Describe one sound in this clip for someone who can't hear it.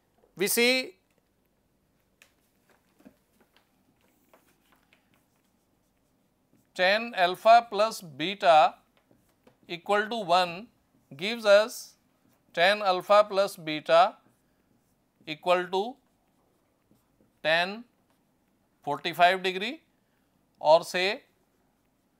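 A man speaks calmly in short phrases, as if explaining, close by.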